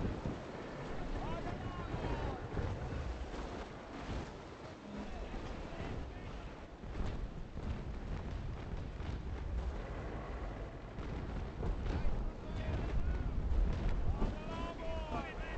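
Waves wash and splash against a wooden ship's hull.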